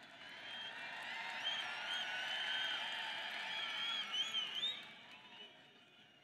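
A crowd cheers and whistles.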